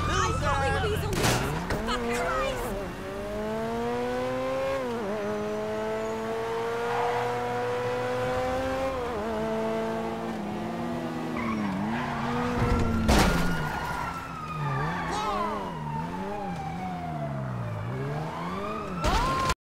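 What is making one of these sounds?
A sports car engine revs hard, rising and falling in pitch as gears change.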